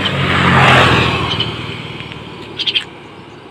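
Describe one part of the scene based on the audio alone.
A motorcycle passes close by and fades away.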